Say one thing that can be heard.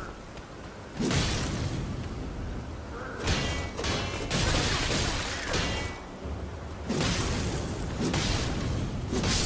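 Metal weapons clash loudly, again and again.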